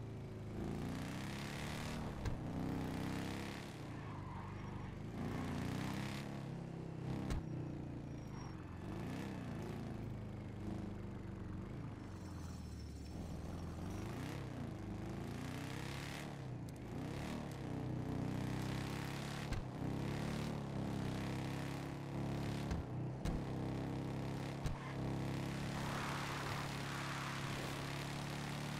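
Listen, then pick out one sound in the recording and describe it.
A motorcycle engine hums and revs up and down as it rides.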